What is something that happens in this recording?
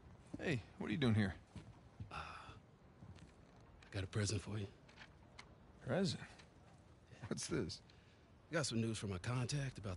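Another man answers calmly.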